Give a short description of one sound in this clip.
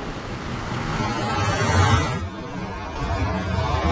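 A low magical whoosh swells and warbles.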